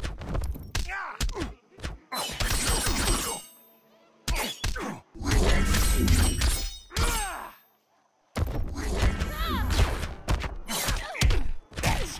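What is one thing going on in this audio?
Energy bursts whoosh and crackle.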